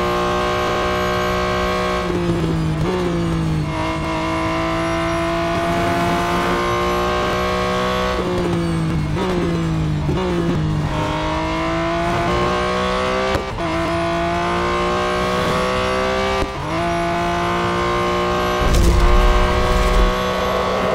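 A flat-six racing car engine screams at high revs and shifts through its gears.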